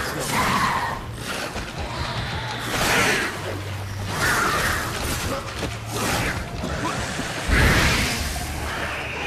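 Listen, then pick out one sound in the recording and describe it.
Swords swing and clash in a fight.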